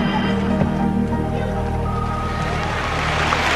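A woman sings.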